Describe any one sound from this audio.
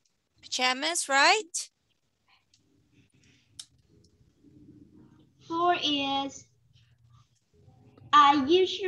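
A woman speaks brightly and with animation over an online call, in short bursts with pauses.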